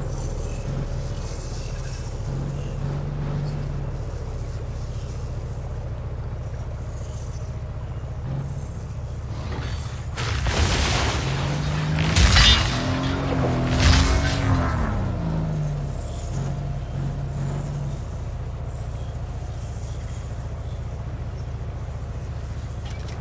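A truck engine hums steadily, rising and falling in pitch.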